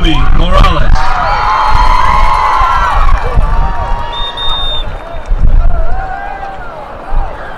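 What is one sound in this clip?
A crowd applauds.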